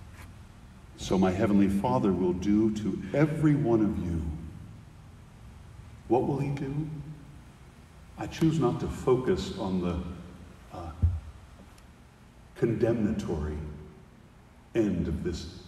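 A middle-aged man speaks calmly into a microphone, in phrases with pauses, in a reverberant hall.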